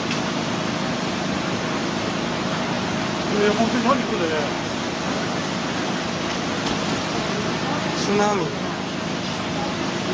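Waves crash against a sea wall.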